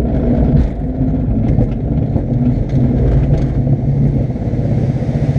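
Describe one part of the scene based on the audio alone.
A glider's wheel rumbles and rattles over a bumpy paved strip.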